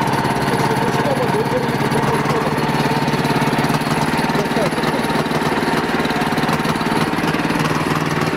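A diesel bulldozer engine rumbles and chugs steadily up close.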